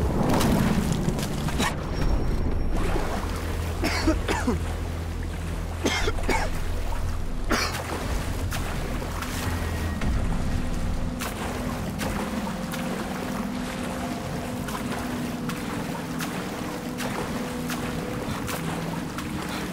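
Water splashes and churns as someone swims.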